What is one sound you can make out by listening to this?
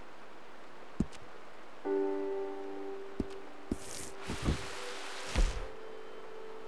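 Short menu clicks and chimes sound.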